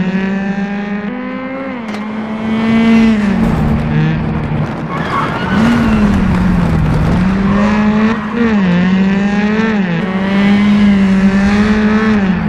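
A rally car engine roars and revs up and down as it races past.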